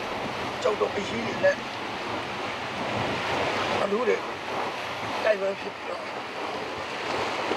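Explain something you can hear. Waves wash steadily on a shore.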